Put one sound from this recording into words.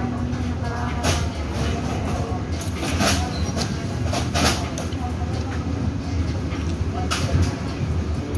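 Chopsticks tap and click against food and a dish.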